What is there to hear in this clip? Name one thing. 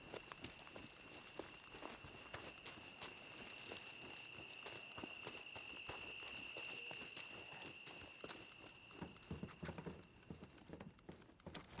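Footsteps crunch through grass and over wooden floorboards at a steady pace.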